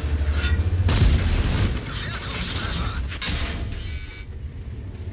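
Shells hit a tank with sharp metallic bangs.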